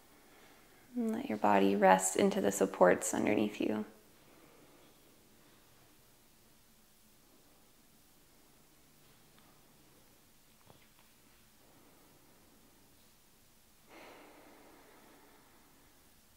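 A young woman speaks calmly and softly, close by.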